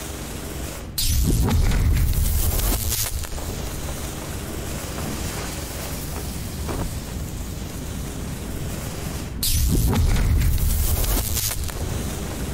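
A loud electric hum surges and crackles, then fades.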